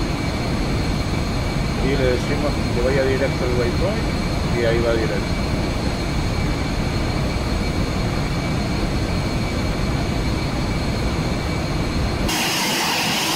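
A jet engine rumbles low and steady inside a cabin.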